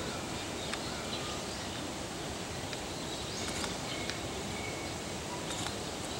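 A bear licks and sucks at a stick.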